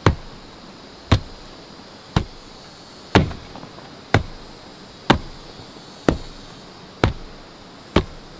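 Feet stamp down on loose soil with dull, regular thuds.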